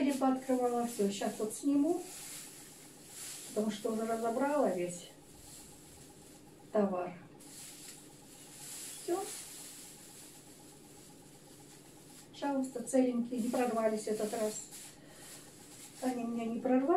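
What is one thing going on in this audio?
An elderly woman speaks calmly and close by, in short phrases with pauses.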